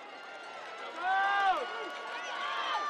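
Players on the sideline shout close by.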